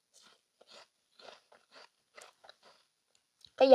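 A young woman chews juicy fruit close to a microphone.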